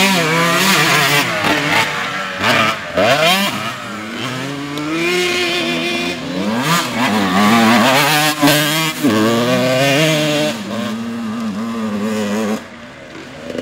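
A dirt bike engine revs loudly close by, rising and falling as it rides.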